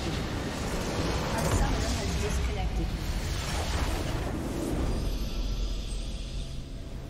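A large crystal shatters with a loud burst of magical blasts.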